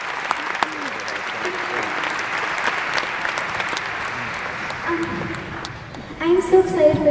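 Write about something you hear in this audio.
A young girl speaks softly through a microphone.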